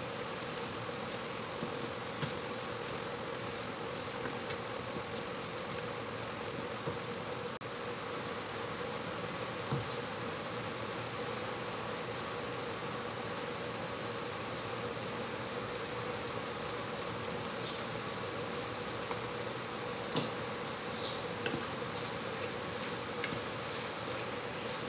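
A wooden spoon scrapes and taps against a metal pan.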